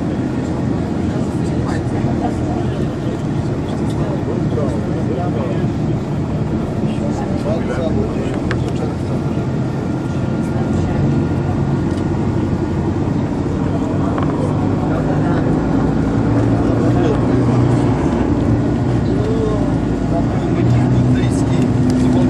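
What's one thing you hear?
A vehicle engine rumbles steadily nearby.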